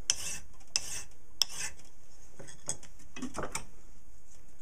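A metal file rasps in short strokes against a piece of metal.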